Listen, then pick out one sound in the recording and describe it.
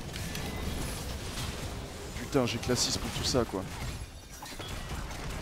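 Fantasy combat effects crackle and whoosh as spells clash.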